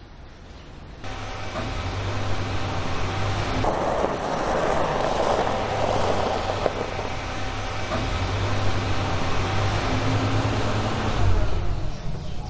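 A car engine hums as the car rolls slowly closer over gravel.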